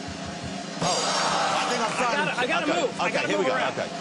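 A man shouts with excitement, heard through a microphone.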